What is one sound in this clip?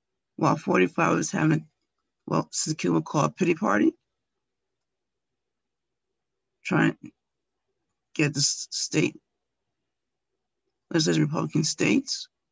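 A middle-aged woman speaks calmly and closely into a microphone, with pauses.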